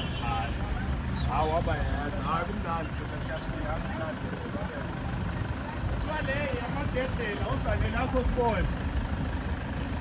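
A man shouts and cheers outdoors.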